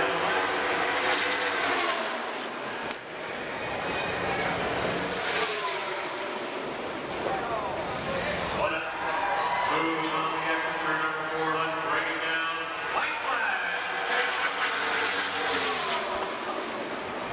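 Race cars roar past at speed.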